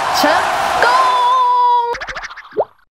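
A young woman exclaims loudly with surprise.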